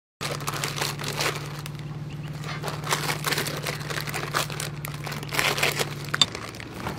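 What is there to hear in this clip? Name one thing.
A plastic wrapper crinkles and rustles in someone's hands.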